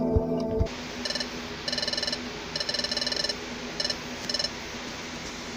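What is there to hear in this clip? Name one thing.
Short electronic blips chirp rapidly in quick bursts.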